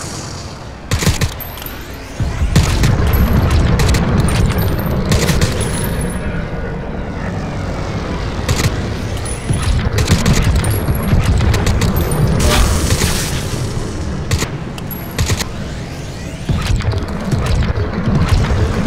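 Rifle shots crack one after another.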